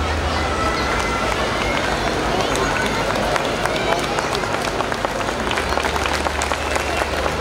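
Music plays loudly through loudspeakers in a large echoing hall.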